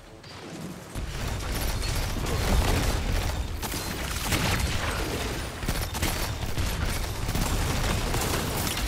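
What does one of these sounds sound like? A video game's heavy weapon fires in loud, booming blasts.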